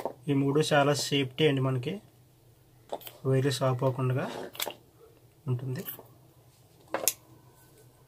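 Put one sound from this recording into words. Plastic parts of an electric plug click as they are handled.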